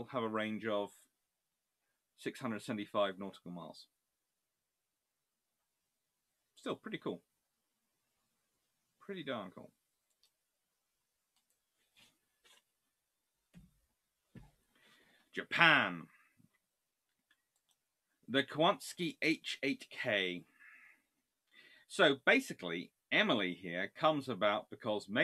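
A man speaks calmly through a microphone, with pauses, as in an online call.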